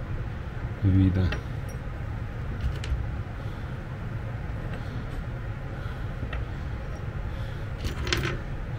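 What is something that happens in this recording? Small plastic parts click and rattle as hands handle them on a table.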